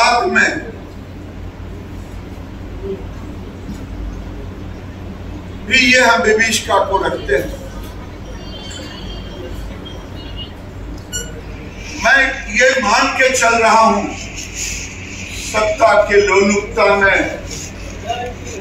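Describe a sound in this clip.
An elderly man speaks calmly into a nearby microphone, in short bursts with pauses.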